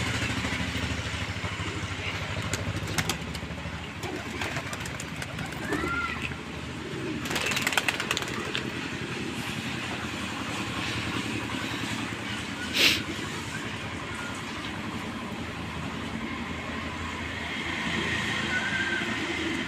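Pigeons coo softly nearby.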